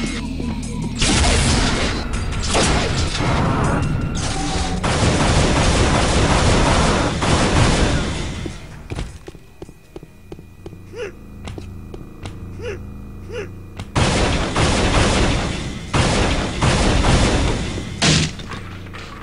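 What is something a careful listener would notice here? A gun fires crackling energy blasts in loud bursts.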